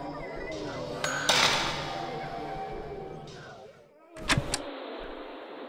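A short electronic chime sounds a few times.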